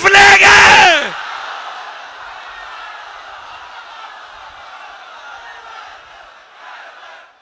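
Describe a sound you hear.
A large crowd cheers.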